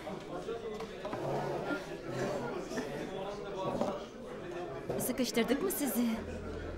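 Several men and women talk over each other with excitement.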